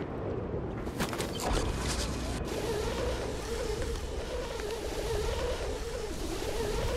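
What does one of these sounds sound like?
A pulley whirs along a steel cable in a rush of wind.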